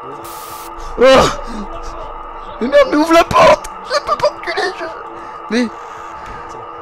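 Young men exclaim and talk excitedly into a microphone.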